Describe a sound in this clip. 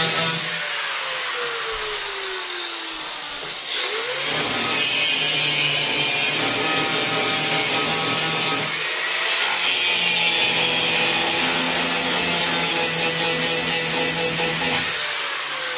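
An angle grinder whines loudly as it grinds against metal.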